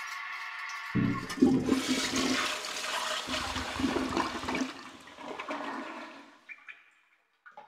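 A toilet flushes with a loud rushing of water that slowly fades.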